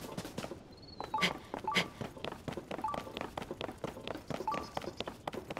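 Hands and feet tap and scrape while climbing up rock.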